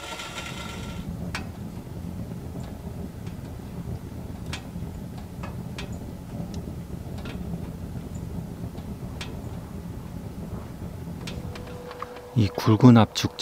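Wood fire crackles and pops softly.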